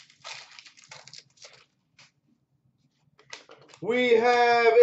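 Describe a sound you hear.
Plastic-wrapped packs rustle and tap as hands handle them close by.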